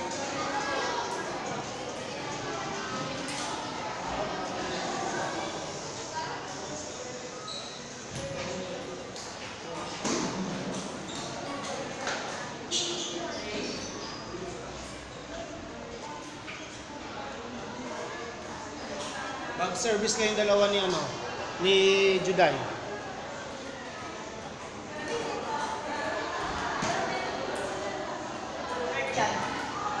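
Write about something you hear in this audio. A ping pong ball clicks on a table.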